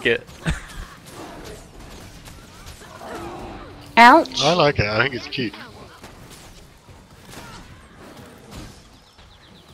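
Game spells burst and crackle in a fight.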